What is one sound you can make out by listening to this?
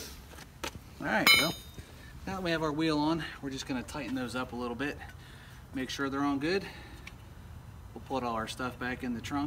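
A middle-aged man talks calmly and clearly, close by, outdoors.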